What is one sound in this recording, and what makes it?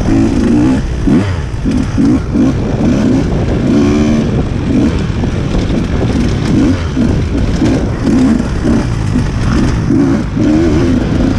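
A dirt bike engine revs and sputters up close.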